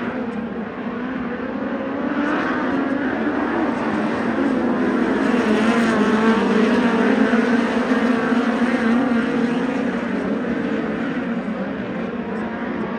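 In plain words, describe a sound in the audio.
Many racing engines roar and whine loudly, swelling as the cars pass nearby.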